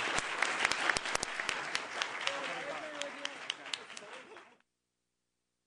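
An audience claps in a room.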